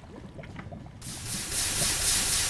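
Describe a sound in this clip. Water gushes and splashes close by.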